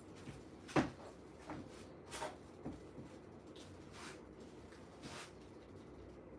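Footsteps thud on a hard floor close by.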